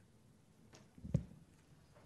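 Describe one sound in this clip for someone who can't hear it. A microphone knocks with a thump.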